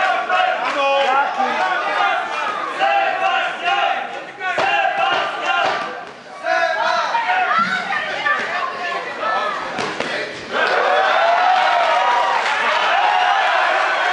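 A crowd shouts and cheers loudly in an echoing hall.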